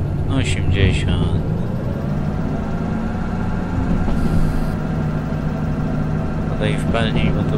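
A diesel locomotive engine rumbles.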